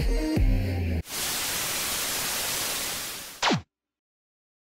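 Static hisses.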